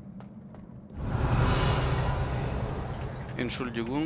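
A magic spell crackles and bursts.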